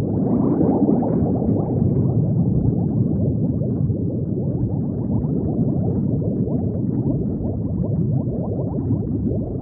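Bubbles gurgle and burble steadily underwater.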